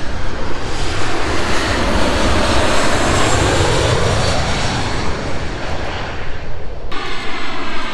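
A jet airliner roars loudly as it flies low overhead.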